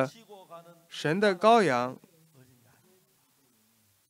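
An elderly man speaks loudly and with animation through a microphone.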